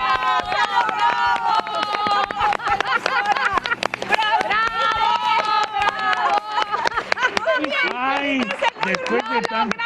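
A woman laughs heartily.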